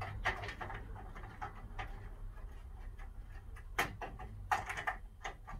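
A plastic ceiling light fitting knocks and clicks as it is handled.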